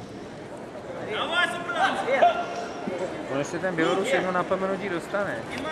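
A man calls out loudly from close by.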